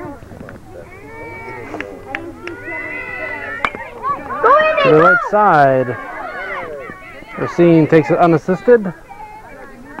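Children shout and cheer excitedly nearby.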